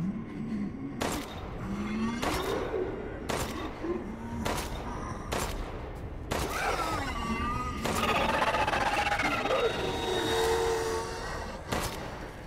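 Gunshots crack loudly, one after another, each with a short echo.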